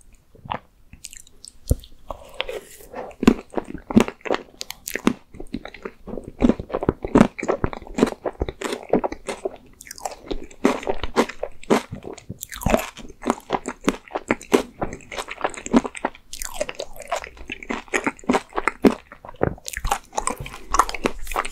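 A man chews and smacks his lips close to a microphone.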